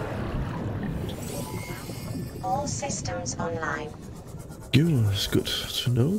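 A submarine's engine hums underwater.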